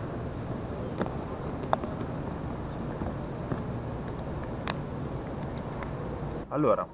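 Plastic connectors click and tap together in a hand.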